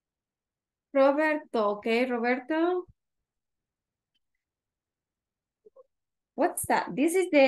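A woman speaks over an online call, heard through a headset microphone.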